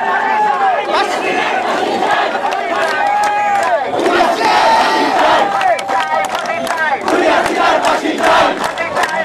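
A crowd of young women and men chants in unison outdoors.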